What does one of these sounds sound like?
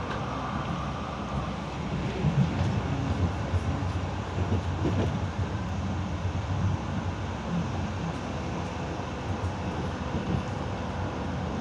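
A tram rumbles steadily along its rails, heard from inside.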